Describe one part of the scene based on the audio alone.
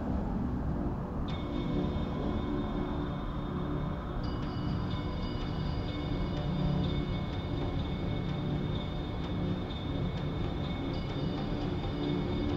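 A small utility vehicle's engine hums as it drives slowly past.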